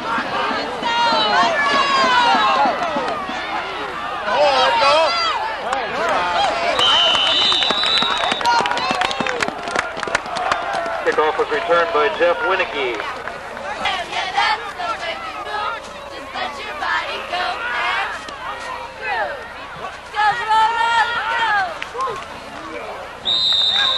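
Young men on the sideline shout and call out close by.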